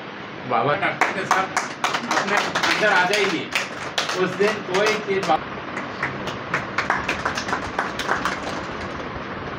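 Hands clap several times.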